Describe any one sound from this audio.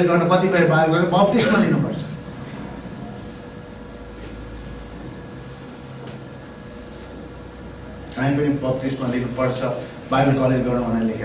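A middle-aged man speaks with animation into a microphone in a reverberant room.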